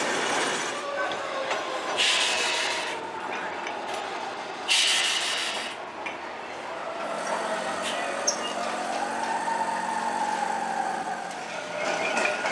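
A tram rolls slowly along curved rails, its wheels squealing.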